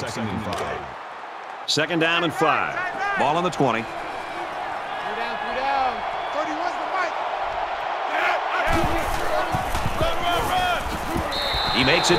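A stadium crowd cheers with a steady roar.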